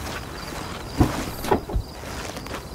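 A car trunk lid thumps open.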